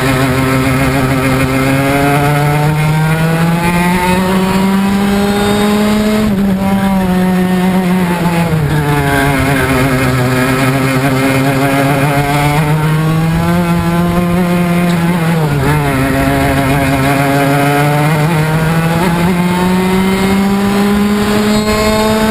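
A go-kart engine whines loudly, rising and falling in pitch as it speeds up and slows through the bends.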